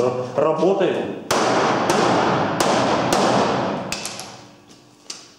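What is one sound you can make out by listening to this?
A hammer taps on a thin metal panel.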